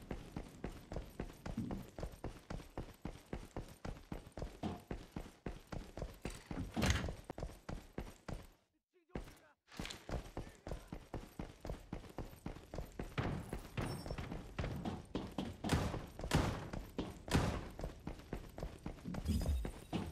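Footsteps fall on a concrete floor.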